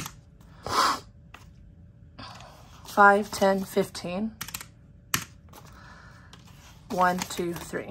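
Paper bills rustle and flick as they are counted by hand.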